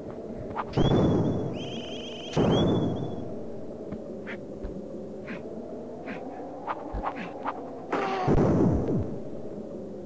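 Loud game explosions burst out a few times.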